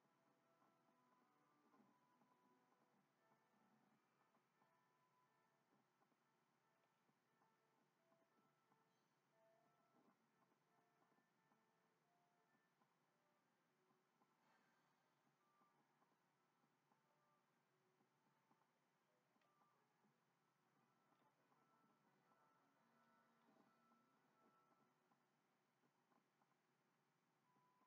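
Soft game music with gentle melodic notes plays from a television speaker.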